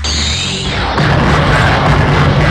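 A large cannon fires with a loud roaring blast.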